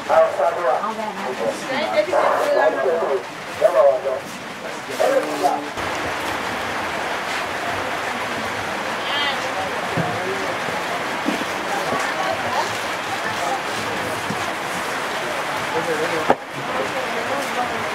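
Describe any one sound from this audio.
Voices of men and women chatter nearby in a busy crowd.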